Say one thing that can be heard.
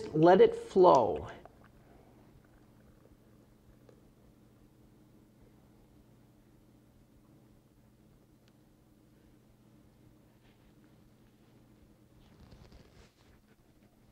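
Thick liquid pours softly into a bucket.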